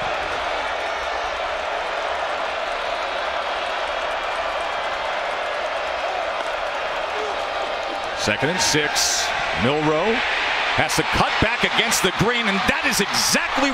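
A large crowd roars steadily in an open stadium.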